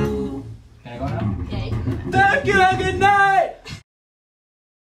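A young man sings loudly into a microphone.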